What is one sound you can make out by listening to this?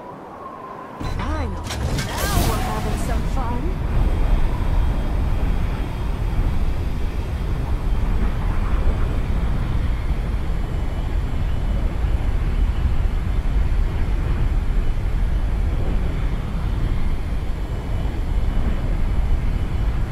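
Wind rushes loudly past a falling figure.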